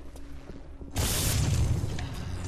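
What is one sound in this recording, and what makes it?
A heavy door slides open with a whoosh.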